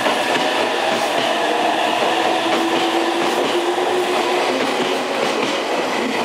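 Train brakes squeal as the train slows.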